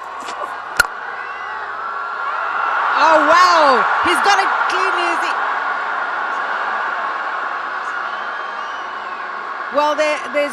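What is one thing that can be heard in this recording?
A stadium crowd cheers and roars, swelling and then slowly easing.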